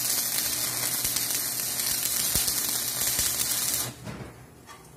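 An arc welder crackles and hisses loudly, close by.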